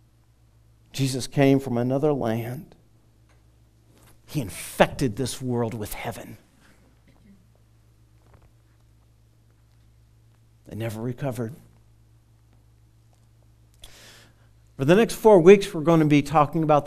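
A man speaks calmly through a headset microphone, in pauses.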